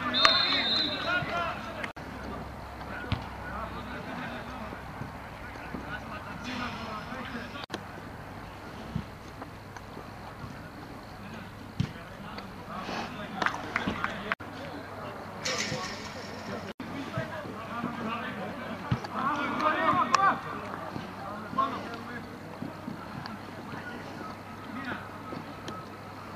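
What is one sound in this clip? A crowd of spectators chatters and calls out in the distance outdoors.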